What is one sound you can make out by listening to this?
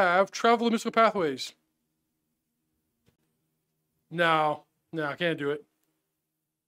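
A man speaks with animation into a microphone, in short bursts.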